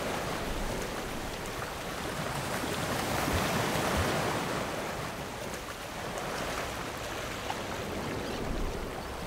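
Water splashes and rushes against a board close by.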